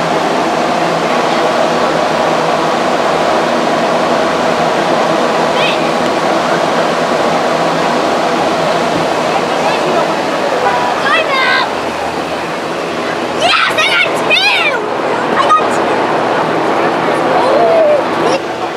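A crowd of people chatters outdoors in the background.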